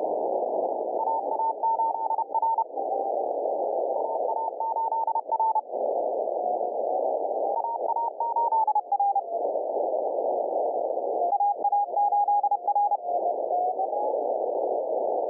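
A Morse code tone beeps on and off in quick bursts through the static.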